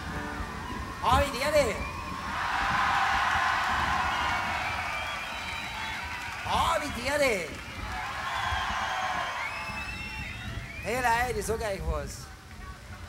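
A man sings loudly through a microphone in short bursts.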